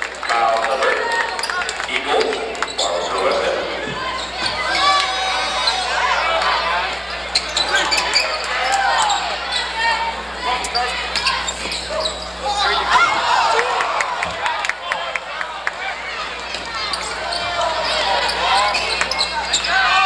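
A crowd cheers and chatters throughout a large echoing gym.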